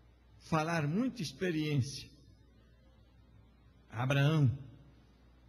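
A middle-aged man speaks emphatically through a microphone.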